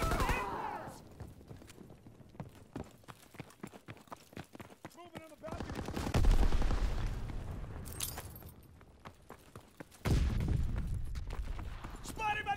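Footsteps crunch quickly over snow and stone.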